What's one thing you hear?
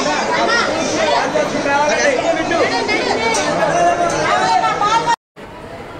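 A crowd of men and women talk and call out loudly close by.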